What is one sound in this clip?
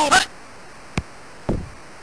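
A football is punted with a dull thump.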